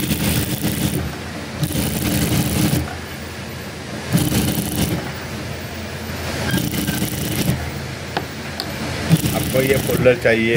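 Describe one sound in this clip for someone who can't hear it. A sewing machine stitches in short whirring bursts.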